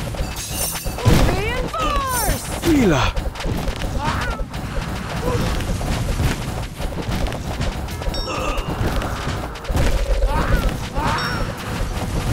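Game battle sounds clatter with quick shots and impacts.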